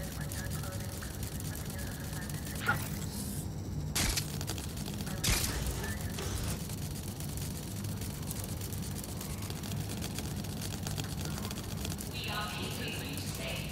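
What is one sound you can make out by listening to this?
A small robot's metal legs skitter and whir as it scuttles along.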